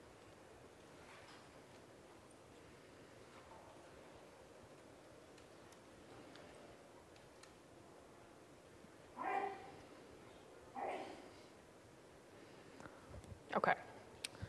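A young woman speaks calmly through a microphone, pausing often.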